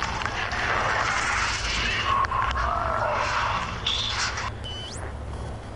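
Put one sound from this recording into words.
Static hisses and crackles harshly.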